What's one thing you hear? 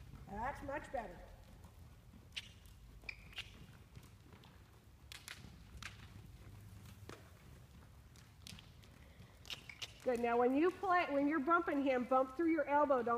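A horse's hooves thud softly on dirt at a steady trot.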